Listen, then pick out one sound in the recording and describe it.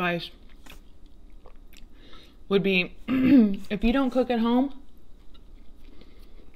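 A young woman chews food with soft smacking sounds.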